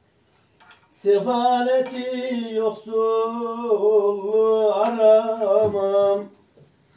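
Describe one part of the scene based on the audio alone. A woman sings in a steady voice nearby.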